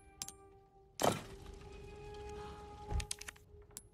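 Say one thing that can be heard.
A heavy stone panel slides into place with a clunk.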